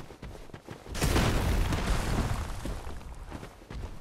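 A loud crystalline crash bursts out and slowly fades.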